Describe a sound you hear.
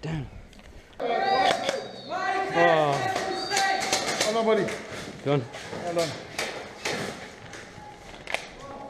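Men talk loudly nearby in an echoing room.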